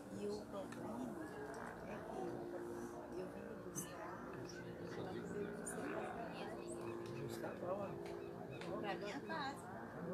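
An elderly man talks calmly nearby.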